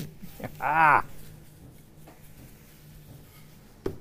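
Fine powder patters onto paper.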